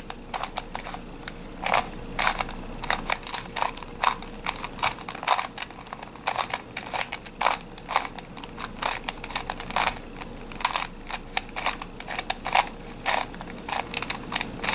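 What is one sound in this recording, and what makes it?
Plastic puzzle pieces click and clatter as they are twisted quickly by hand.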